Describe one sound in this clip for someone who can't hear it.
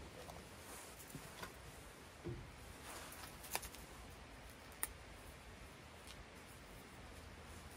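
A paper packet crinkles and tears.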